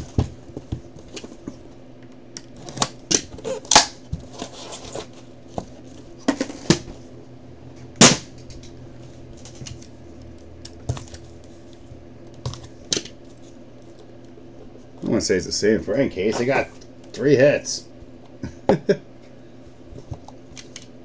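Cardboard boxes and card packs tap, scrape and rustle as hands open them.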